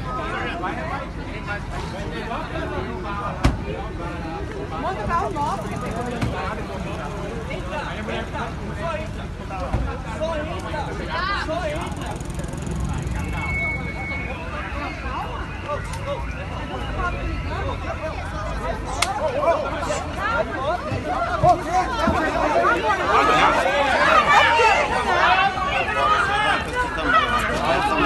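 Several men talk and shout agitatedly nearby, outdoors.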